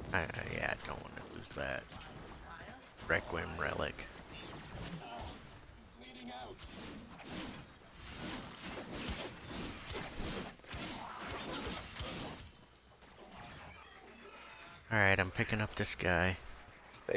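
Blades swing and clash in a fast fight.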